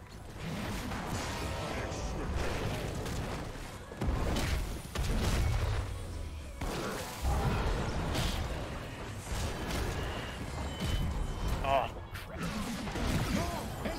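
Game spells and attacks crackle and boom in quick bursts.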